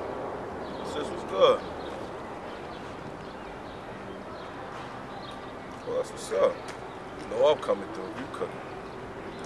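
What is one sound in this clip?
A young man talks on a phone close by, in short bursts.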